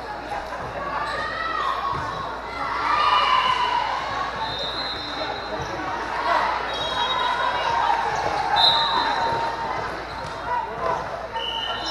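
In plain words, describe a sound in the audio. A crowd of young girls chatters and cheers in a large echoing hall.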